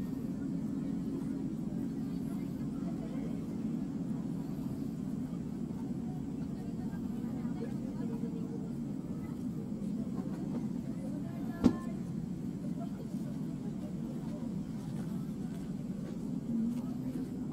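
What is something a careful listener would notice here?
A man talks quietly outdoors at a distance.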